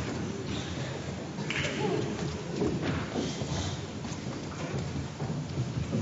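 A young woman speaks into a microphone in a large echoing hall.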